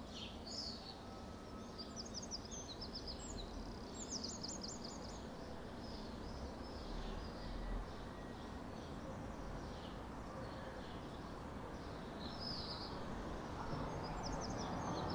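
Small birds chirp and twitter high overhead outdoors.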